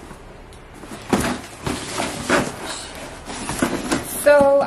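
Paper and cardboard rustle and crinkle as they are handled.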